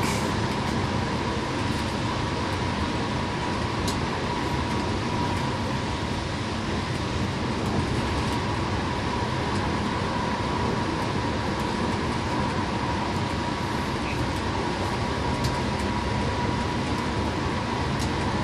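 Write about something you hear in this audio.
Tyres roar steadily on the road at speed.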